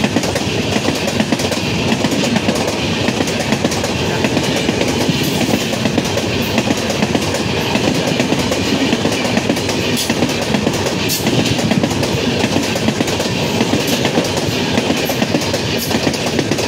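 A passenger train rushes past close by, its wheels rumbling and clattering over the rails.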